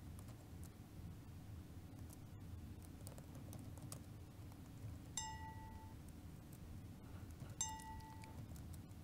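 Keys clack softly on a laptop keyboard.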